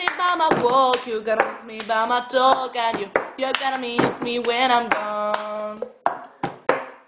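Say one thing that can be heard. A young woman sings close by.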